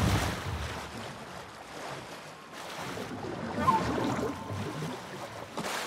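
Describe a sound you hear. Water splashes as a swimmer moves through it.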